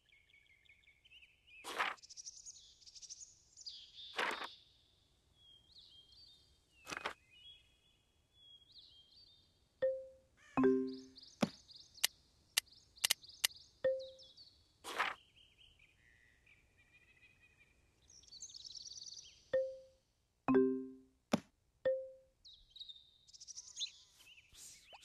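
Bright game music plays throughout.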